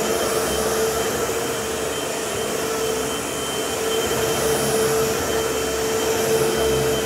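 An upright vacuum cleaner runs with a steady whine and roar.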